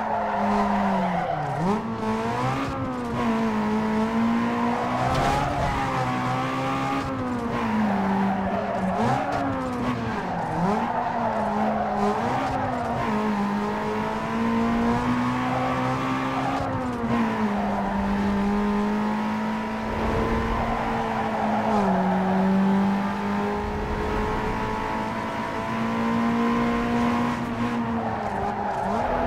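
Tyres screech as a car drifts through corners.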